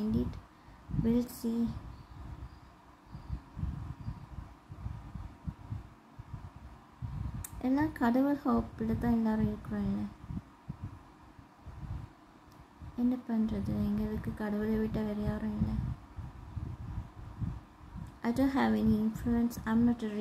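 A woman sings softly, close up.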